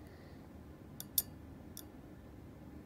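A small screwdriver clicks against metal parts.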